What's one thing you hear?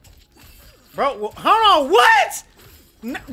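A young man shouts loudly with excitement into a microphone.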